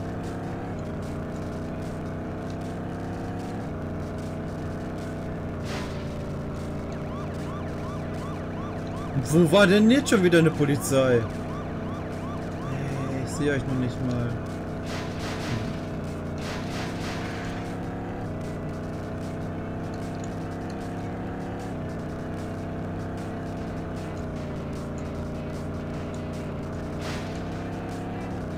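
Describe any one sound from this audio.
A game car engine roars steadily at high speed.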